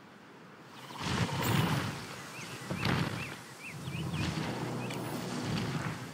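A large dinosaur's heavy footsteps thud on the ground.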